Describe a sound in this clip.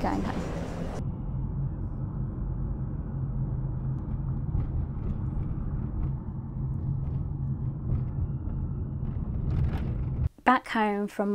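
A vehicle's engine hums steadily from inside the car.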